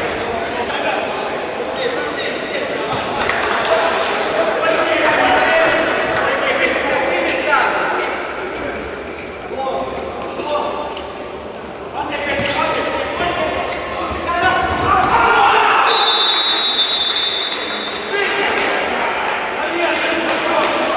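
A crowd of spectators murmurs and shouts in an echoing indoor arena.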